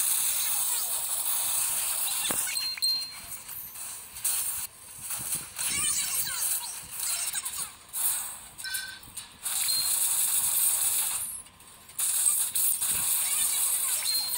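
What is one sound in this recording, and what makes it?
Game sound effects clash and chime in a battle.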